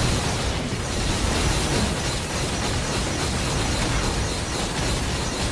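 Loud impacts and blasts boom continuously.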